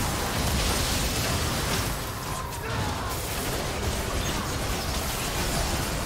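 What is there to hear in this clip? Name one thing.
Game spells blast and crackle during a fight.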